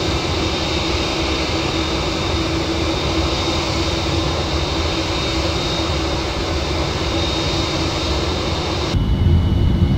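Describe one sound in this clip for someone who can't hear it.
Jet engines roar steadily outside an aircraft cabin.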